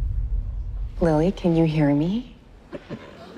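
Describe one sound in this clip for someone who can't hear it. A woman speaks softly and urgently.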